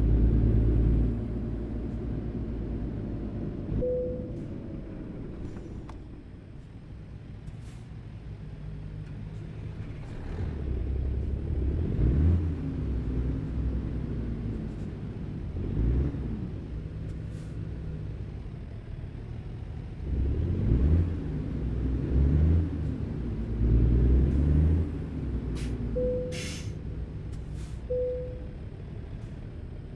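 A truck engine rumbles low and steady, rising and falling as it speeds up and slows.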